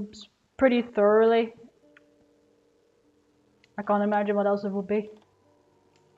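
A young woman speaks expressively into a close microphone, with a drawn-out, sing-song tone.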